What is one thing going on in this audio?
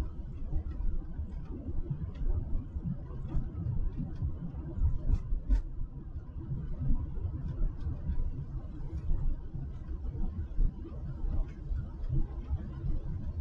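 Wind buffets and rumbles loudly outdoors.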